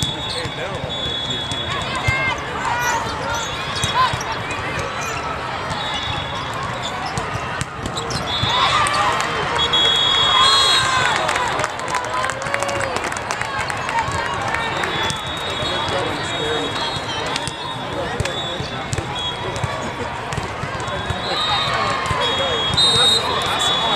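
Young women shout and cheer in a large echoing hall.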